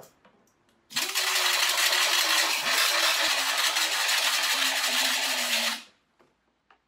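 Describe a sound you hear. A power tool whines loudly as it grinds the mat.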